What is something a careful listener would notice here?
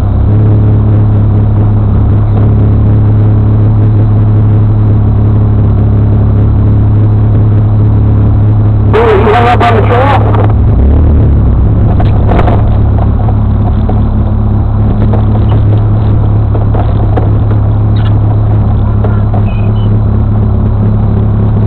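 An engine idles loudly and steadily close by.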